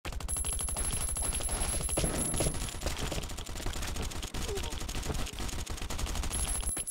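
Quick footsteps thud as a game character runs.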